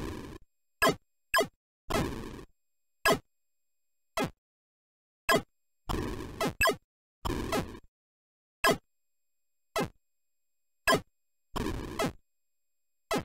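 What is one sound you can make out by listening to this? Electronic game explosions rumble in short noisy bursts.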